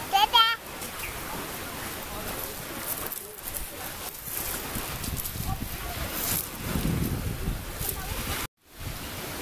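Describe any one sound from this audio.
Pebbles crunch and clatter under small hands.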